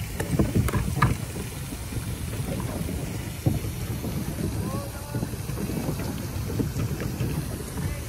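Water laps and splashes against a small boat.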